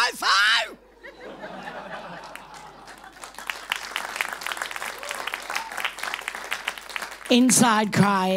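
An audience laughs and claps.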